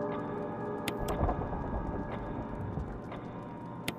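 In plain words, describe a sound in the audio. Clock gears grind and whir as they turn.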